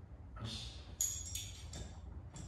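A plastic seat clicks and rattles as it is adjusted.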